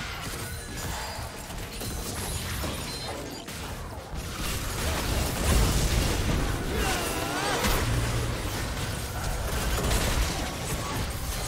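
Video game spells whoosh, crackle and burst during a fast battle.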